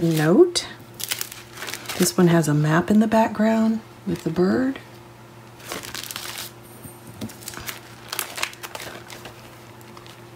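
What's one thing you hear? Plastic wrapping crinkles as hands handle a packet.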